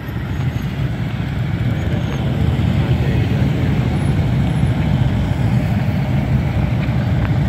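A column of touring motorcycles rumbles past in a slow procession.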